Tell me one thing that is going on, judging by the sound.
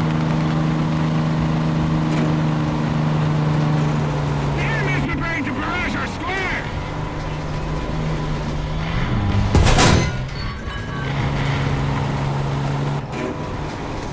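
A tank engine idles with a low rumble.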